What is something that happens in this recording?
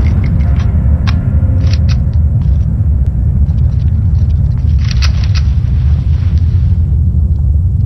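Gunshots fire in rapid bursts, echoing off close stone walls.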